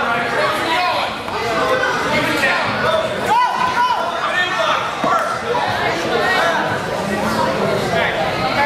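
A crowd of men and women shout and cheer loudly in an echoing hall.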